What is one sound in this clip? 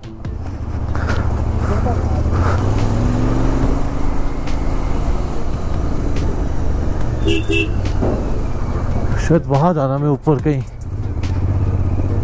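A motorcycle engine thuds steadily up close.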